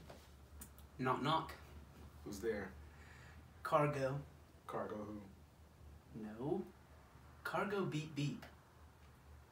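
A young man speaks calmly and close by.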